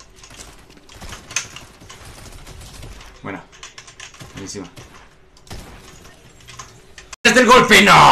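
Gunshots crack in quick bursts from a video game.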